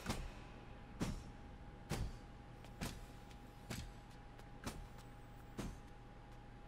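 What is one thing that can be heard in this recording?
Heavy armoured footsteps thud and echo slowly through a large hall.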